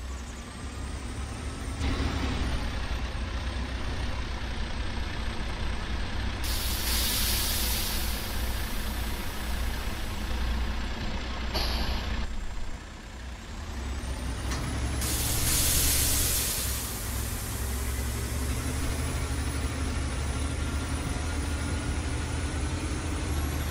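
A Cummins X15 inline-six diesel dump truck engine idles with a deep rumble.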